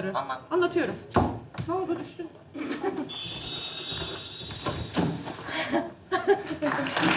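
A studio audience laughs.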